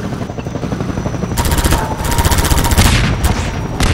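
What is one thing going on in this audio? A gun clicks as it is switched.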